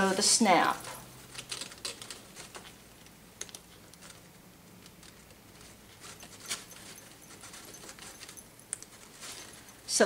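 Small metal coins on a hip scarf jingle softly.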